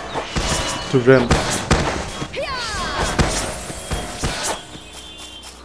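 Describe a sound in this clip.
A magic spell bursts with a bright whooshing blast.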